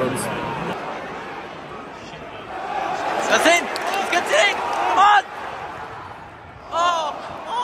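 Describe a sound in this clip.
A stadium crowd murmurs and cheers all around.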